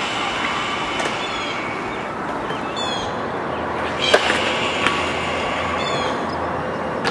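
A hawk screams with sharp, descending cries.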